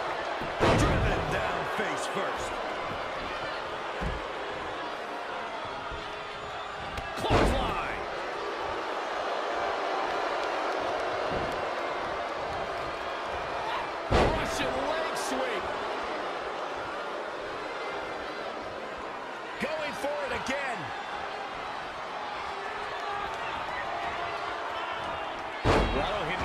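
Heavy thuds of bodies slamming onto a wrestling mat ring out now and then.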